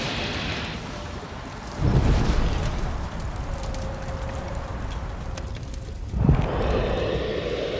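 Footsteps thud across wooden boards.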